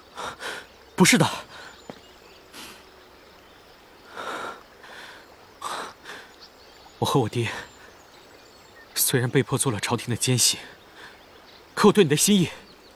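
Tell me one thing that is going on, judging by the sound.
A young man speaks in a pained, emotional voice, close by.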